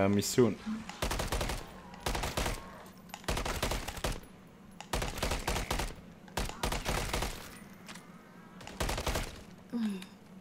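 Gunfire bursts out in short volleys.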